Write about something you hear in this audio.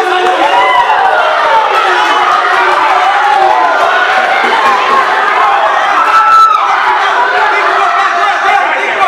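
A crowd of men shout and cheer loudly nearby.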